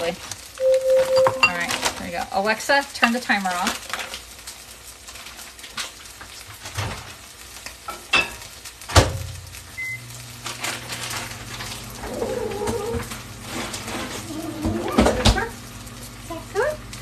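Fish sizzles gently in a hot pan.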